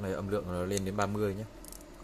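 A button clicks softly.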